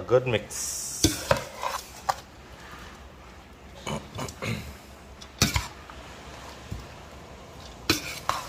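A metal spoon scrapes and clinks against a bowl.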